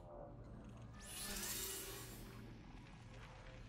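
A soft electronic whoosh swells and fades.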